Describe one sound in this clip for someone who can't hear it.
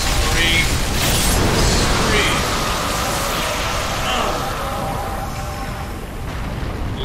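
A loud rushing roar surges.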